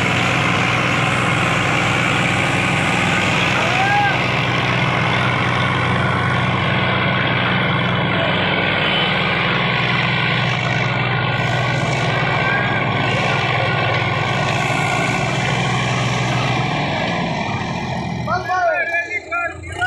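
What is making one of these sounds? Tractor tyres spin and scrape on dusty ground.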